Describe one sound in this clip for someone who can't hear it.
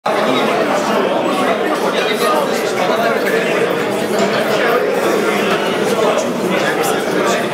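Dishes and cutlery clink on plates.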